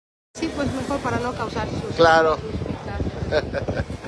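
Several men talk among themselves outdoors.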